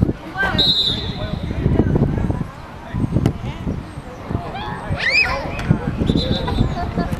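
Young people shout and cheer outdoors.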